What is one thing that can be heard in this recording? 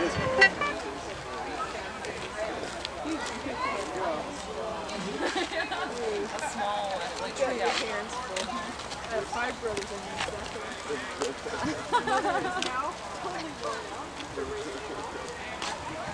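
Many people chatter nearby outdoors, with children's voices among them.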